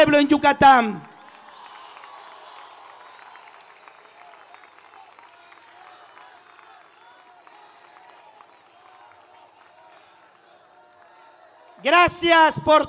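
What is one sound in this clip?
A large crowd cheers and roars in the distance.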